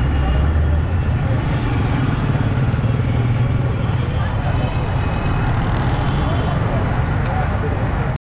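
Motorcycle engines run nearby on a busy street.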